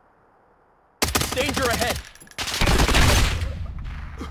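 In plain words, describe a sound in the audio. Gunshots crack loudly in rapid bursts.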